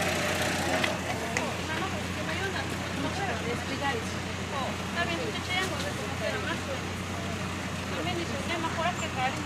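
Several women and men talk at once nearby, outdoors.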